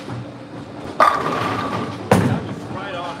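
Bowling pins clatter as a ball strikes them.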